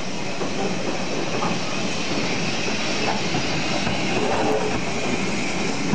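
A steam locomotive chuffs past close by.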